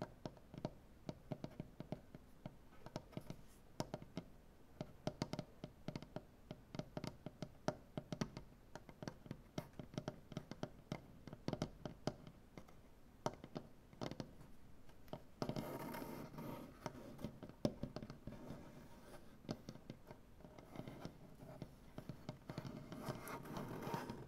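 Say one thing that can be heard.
Fingernails tap and click rapidly on a wooden surface, close by.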